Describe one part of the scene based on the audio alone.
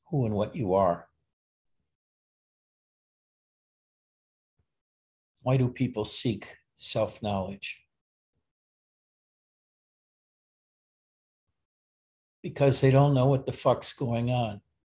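An elderly man speaks calmly and close to the microphone, with long pauses.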